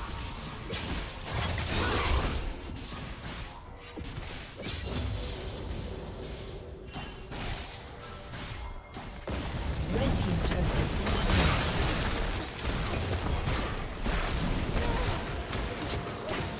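Game spell effects and weapon hits crackle and clash in a busy fight.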